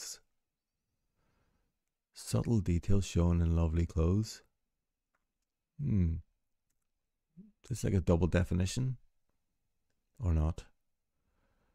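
A middle-aged man talks calmly and thoughtfully into a close microphone, with pauses.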